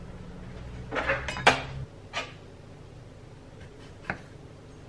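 A knife taps on a wooden board.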